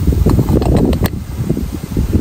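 A metal lid clinks shut on a kettle.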